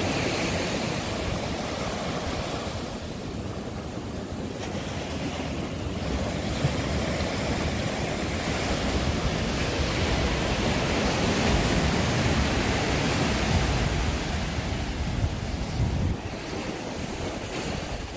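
Wind blusters across the microphone outdoors.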